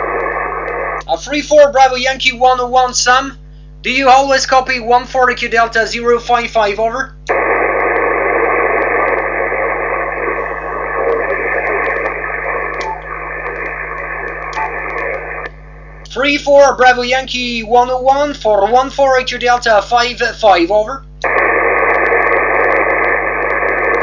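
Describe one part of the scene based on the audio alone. A radio receiver hisses with loud static through its loudspeaker.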